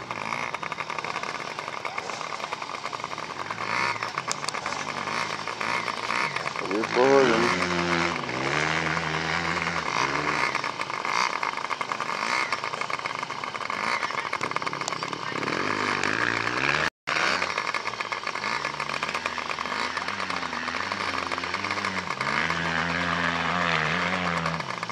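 Small motorbike engines idle and rev nearby.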